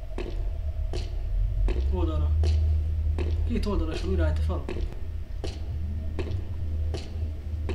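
Footsteps thud at a slow, even pace.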